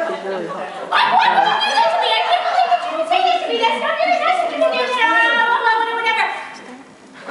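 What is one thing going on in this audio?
A woman speaks with animation through a loudspeaker.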